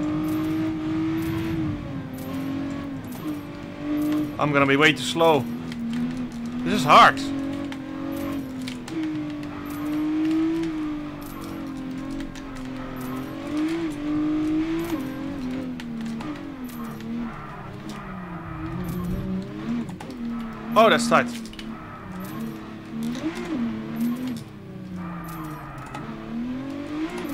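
A car engine hums and revs up and down as it races.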